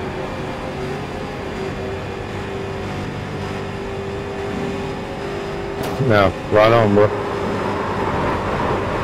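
A V8 stock car engine drones at high revs.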